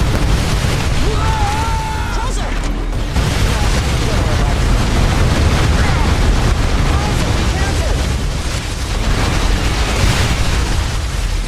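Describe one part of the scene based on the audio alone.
Explosions boom and rumble in a video game.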